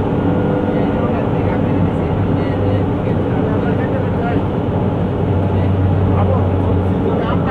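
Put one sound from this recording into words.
Tyres roll steadily on the road surface.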